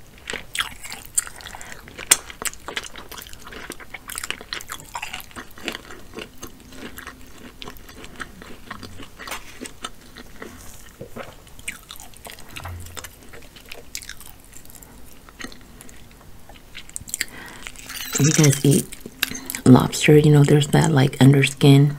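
Fingers squelch through a wet, saucy crab.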